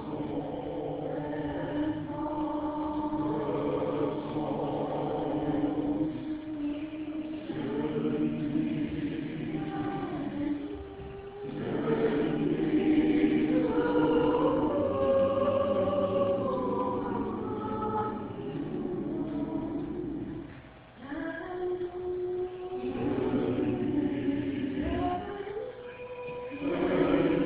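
A choir of older men and women sings together.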